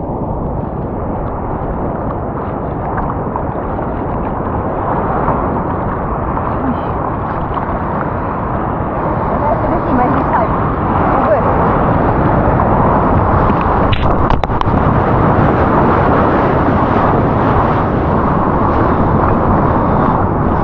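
Water sloshes and splashes close by, muffled as if heard through a waterproof housing.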